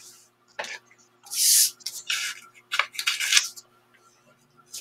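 Paper rustles as a hand slides a sheet.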